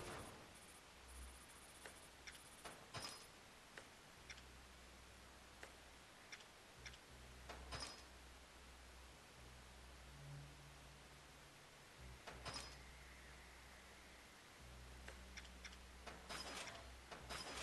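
Game menu clicks and chimes sound as selections are made.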